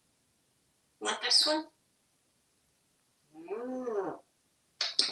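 A parrot chatters and squawks close by in short bursts.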